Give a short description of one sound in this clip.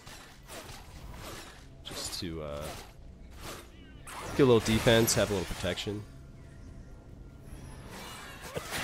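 Video game spell effects whoosh and clash in a fight.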